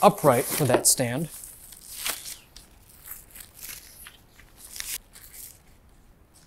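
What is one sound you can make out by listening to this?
Plastic wrapping rustles and crinkles as it is unwrapped.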